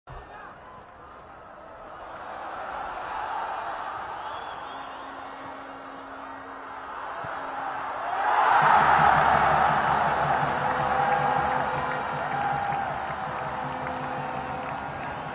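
A large stadium crowd murmurs and then swells into loud cheering.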